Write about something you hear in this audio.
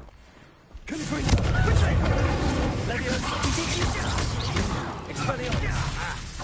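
Magic spells blast and roar loudly in a fight.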